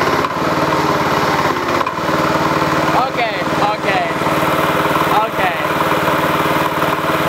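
A small tractor engine chugs steadily up close.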